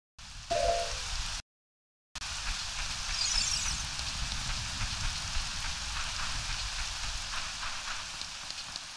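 Steady rain patters down outdoors.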